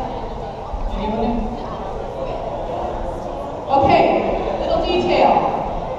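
A crowd of men and women chatter throughout a large echoing hall.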